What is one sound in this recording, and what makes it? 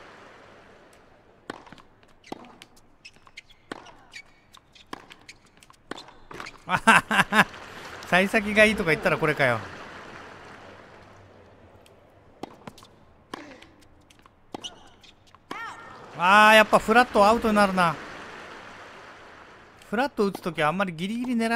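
A tennis ball is hit back and forth with rackets, with sharp pops.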